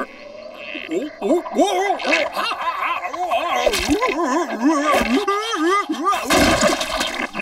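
A dog whines and yelps excitedly.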